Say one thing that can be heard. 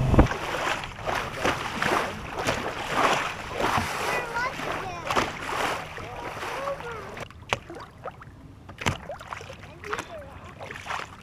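Wind blows across open water.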